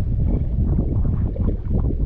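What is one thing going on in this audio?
A spinning reel's handle is cranked.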